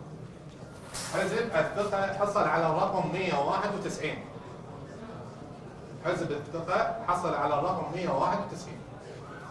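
A man announces through a microphone in a calm, clear voice.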